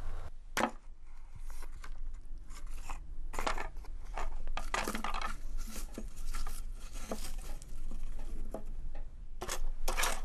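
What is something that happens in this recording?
Fingers rummage and rustle through foil and paper.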